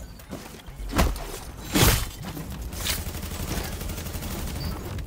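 Loud gunshots ring out in an echoing indoor space.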